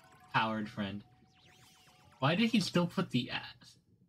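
A magical shimmering chime sounds.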